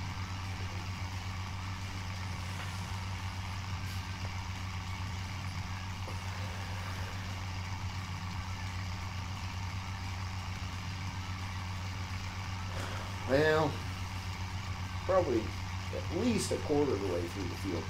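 A tractor engine hums steadily.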